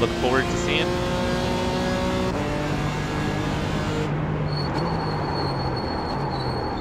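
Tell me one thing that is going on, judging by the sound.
A race car engine roars steadily, dropping in pitch as it shifts gear.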